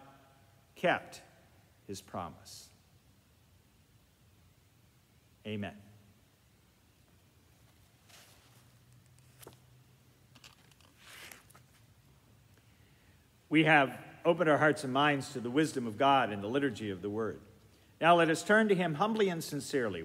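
An elderly man speaks calmly and close to the microphone, in a softly echoing room.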